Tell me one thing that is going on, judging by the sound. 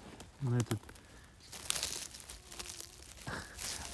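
Footsteps crunch on dry forest litter.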